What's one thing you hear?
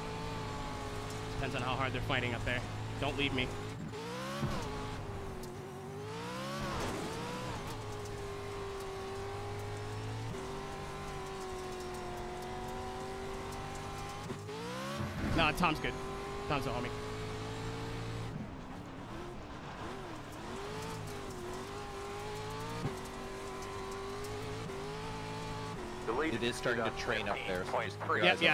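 A race car engine roars and revs up and down.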